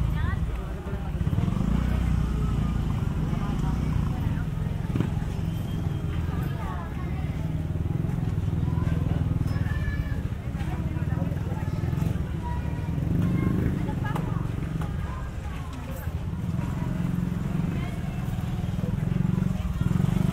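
A busy crowd of people chatters in the open air.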